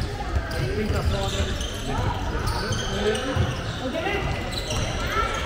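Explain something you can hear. Sneakers squeak on a sports hall floor.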